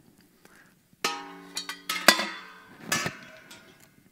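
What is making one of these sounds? A metal pot clangs and rings.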